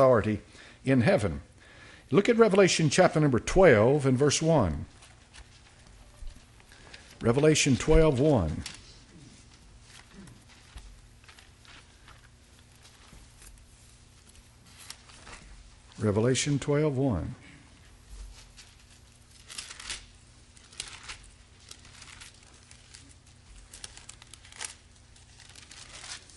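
Pages rustle as an elderly man turns them.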